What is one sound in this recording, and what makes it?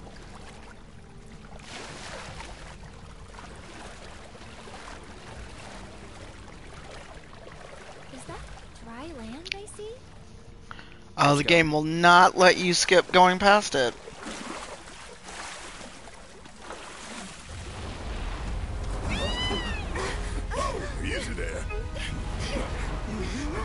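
Water splashes as large birds wade through a lake.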